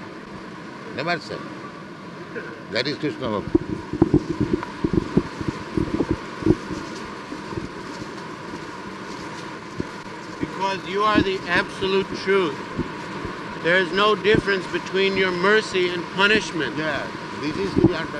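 An elderly man speaks into a microphone, calmly, on an old hissy recording.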